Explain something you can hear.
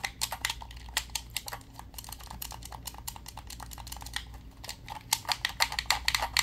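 Fingertips tap and click rapidly on a plastic game controller close to the microphone.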